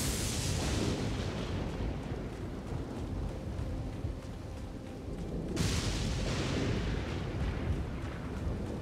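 Footsteps run through dry grass.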